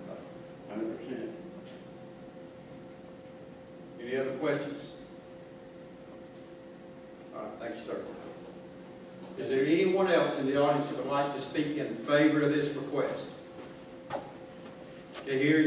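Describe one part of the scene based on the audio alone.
A man speaks through a microphone in a large echoing room, in short bursts with pauses.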